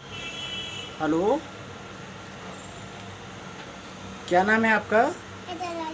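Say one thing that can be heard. A young boy speaks loudly close by, in short bursts.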